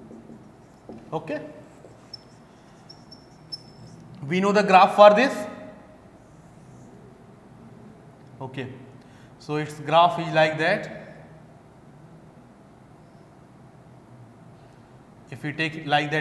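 A man speaks calmly nearby, in short bursts, with pauses.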